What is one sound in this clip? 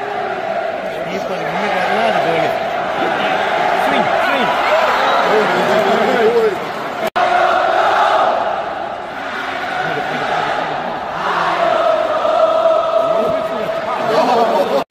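A large crowd chants and sings loudly all around.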